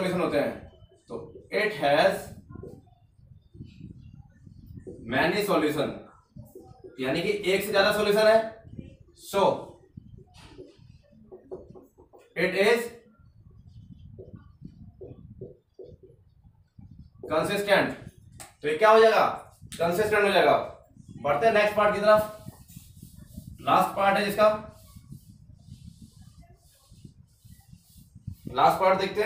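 A young man speaks calmly and clearly, close by, explaining.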